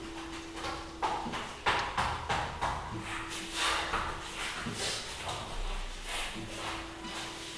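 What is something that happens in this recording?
Hands and feet thump onto a floor mat.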